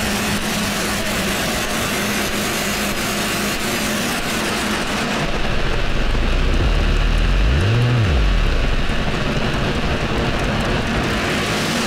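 Live electronic music plays from synthesizers and drum machines, with a throbbing deep bass that swoops down at one point.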